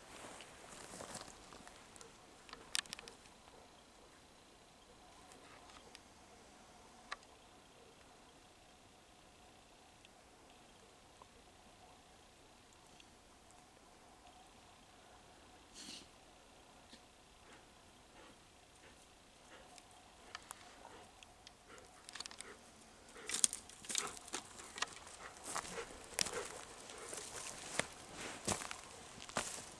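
A dog's paws rustle and crunch through dry leaves and twigs.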